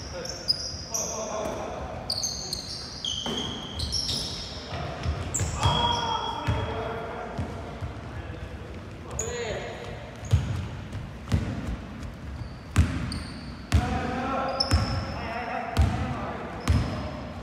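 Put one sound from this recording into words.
Shoes squeak sharply on a gym floor.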